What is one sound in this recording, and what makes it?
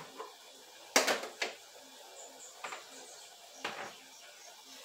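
Plastic bowls knock together.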